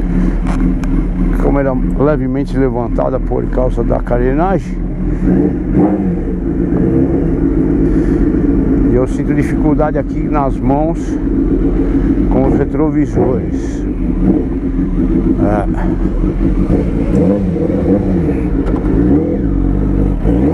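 A motorcycle engine rumbles close by and revs up and down.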